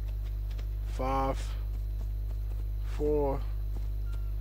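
A horse neighs.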